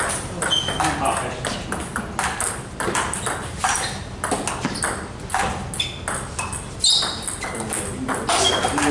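Ping-pong balls click rapidly against paddles and tables.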